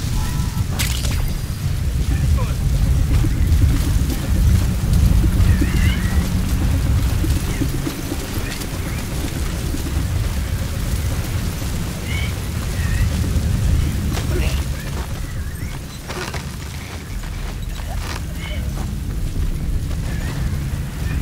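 Wind roars steadily outdoors.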